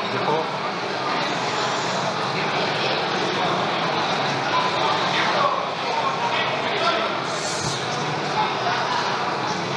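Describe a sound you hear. A large crowd murmurs and stirs in an echoing hall.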